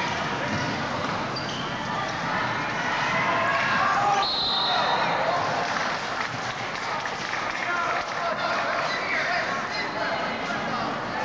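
A small crowd murmurs and calls out in a large echoing gym.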